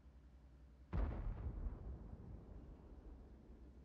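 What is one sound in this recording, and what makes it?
A tank cannon fires with a loud boom that rolls away.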